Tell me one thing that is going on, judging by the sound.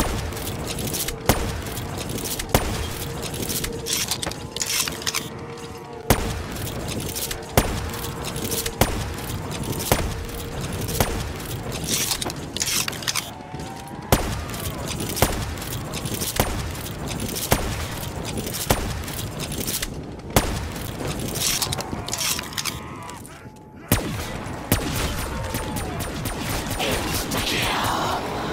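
Creatures growl and moan.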